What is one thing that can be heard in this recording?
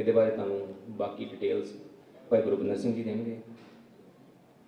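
A man speaks into a microphone over loudspeakers in an echoing hall.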